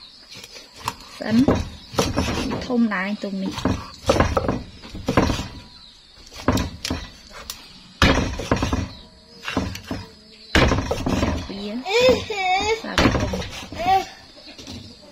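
A cleaver chops through fish onto a hard surface with sharp thuds.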